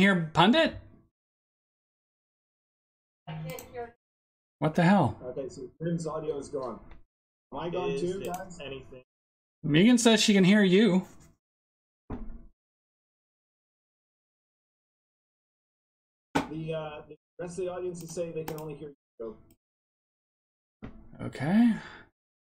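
A man talks with animation over an online call, in short bursts with pauses.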